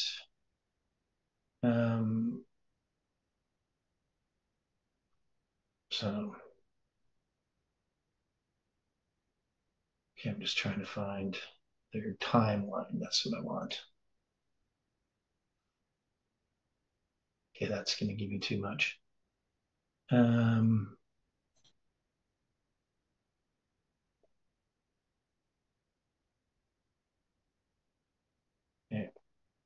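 A middle-aged man speaks calmly into a close microphone, in short bursts with long pauses.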